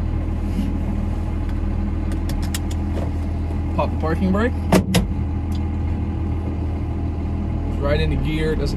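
A car engine hums steadily at a low idle.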